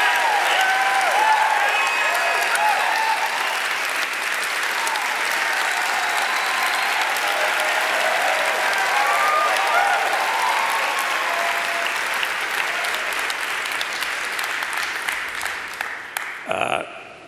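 A large audience cheers and applauds loudly in a big echoing hall.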